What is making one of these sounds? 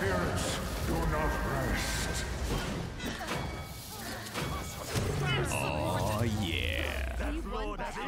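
Video game gunfire and magic blasts crackle and boom.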